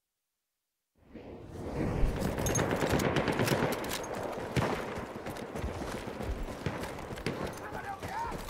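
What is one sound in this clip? Footsteps crunch quickly over sandy, stony ground.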